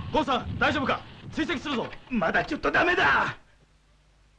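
A middle-aged man answers nervously over a headset radio.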